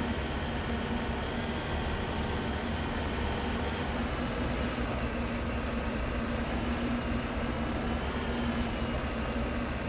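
A vehicle engine hums steadily as it drives over rough ground.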